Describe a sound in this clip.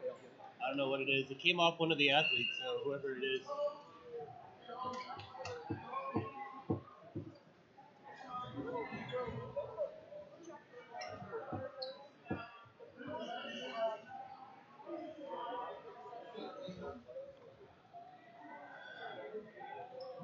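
A crowd of people chatters in a large echoing gym.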